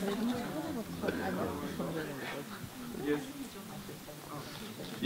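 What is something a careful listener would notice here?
People chat quietly nearby.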